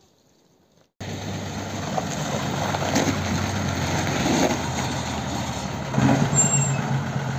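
Bus tyres roll over a wet road.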